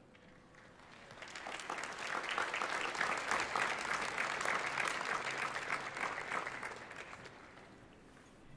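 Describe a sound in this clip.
A large crowd applauds outdoors, swelling and then fading away.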